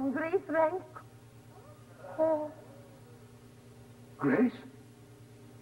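A woman exclaims dramatically in short bursts, close by.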